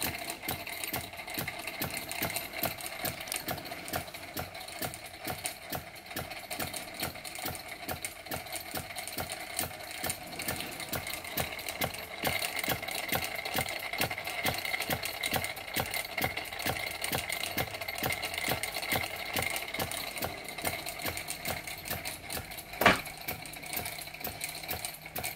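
A small steam engine's flywheel whirs with a metallic rattle.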